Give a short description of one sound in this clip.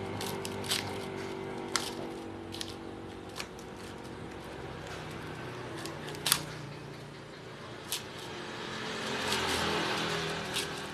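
Copper wires rustle and scrape against metal as they are pulled out.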